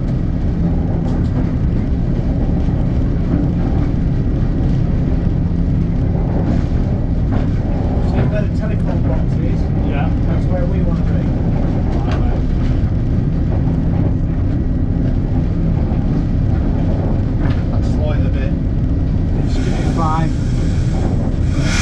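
A steam locomotive rumbles steadily as it rolls slowly along the track.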